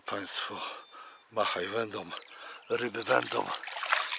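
A fish splashes into water.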